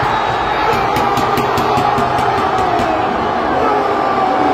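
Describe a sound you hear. Spectators clap their hands rapidly.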